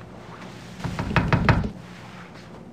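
A woman knocks on a wooden door.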